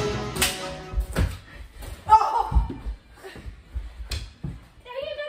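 Hockey sticks clack and slap a ball.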